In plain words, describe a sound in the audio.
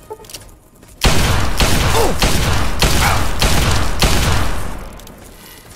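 Revolver shots boom in quick succession.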